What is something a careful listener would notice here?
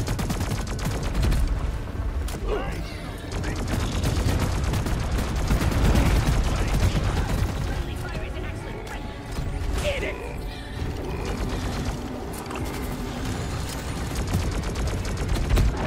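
Game creatures screech and explode.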